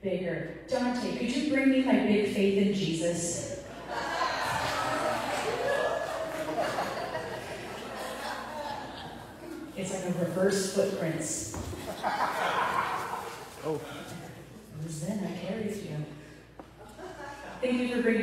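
Several people talk in a large echoing hall.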